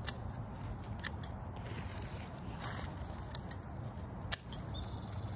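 Garden shears snip through twigs.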